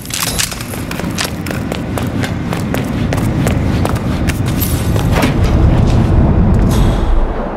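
Footsteps tap along a hard floor.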